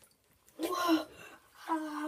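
Water sloshes softly as a foot dips into a filled bathtub.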